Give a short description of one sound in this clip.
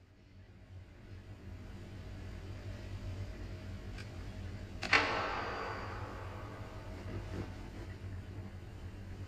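Footsteps tread softly on a metal floor.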